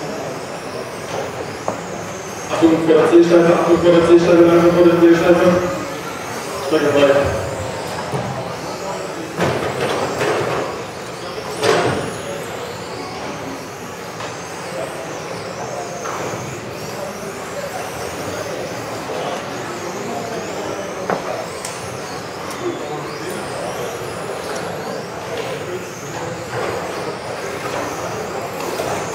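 Small electric model cars whine as they race around a large echoing hall.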